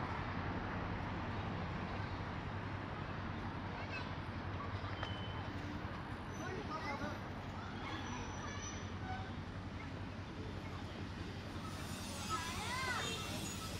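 City traffic hums steadily in the distance, outdoors.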